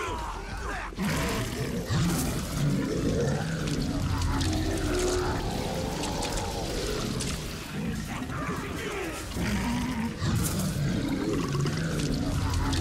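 A creature roars and grunts as it is struck.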